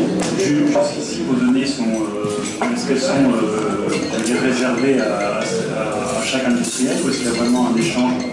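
A middle-aged man speaks calmly through a microphone.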